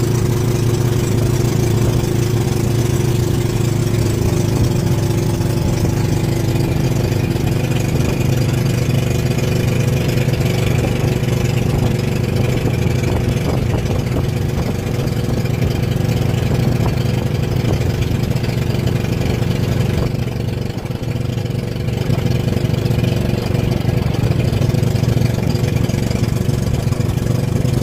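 Water splashes and rushes along a boat's hull.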